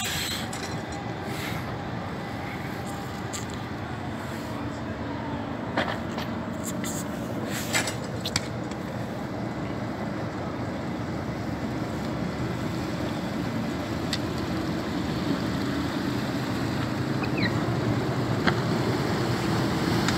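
A boat engine rumbles steadily nearby.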